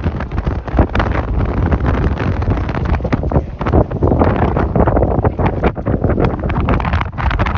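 Strong wind gusts and buffets loudly outdoors.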